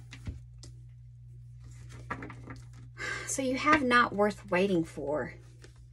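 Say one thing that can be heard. Playing cards slide and tap softly on a wooden table.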